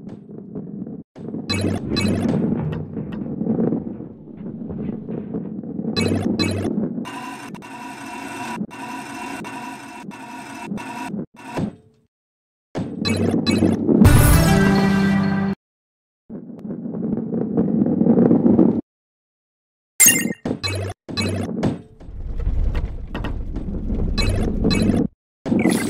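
Coins chime in short, bright pings as they are picked up.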